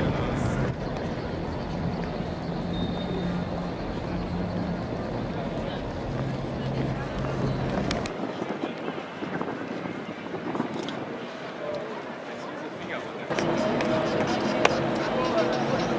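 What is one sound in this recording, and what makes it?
Footsteps shuffle on hard pavement.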